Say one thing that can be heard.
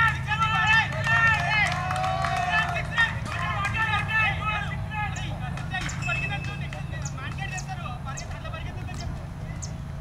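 Men call out to one another from a distance outdoors.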